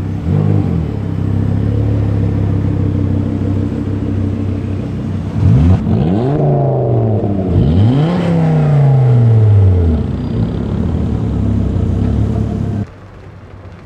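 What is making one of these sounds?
A car engine rumbles loudly and revs up and down nearby.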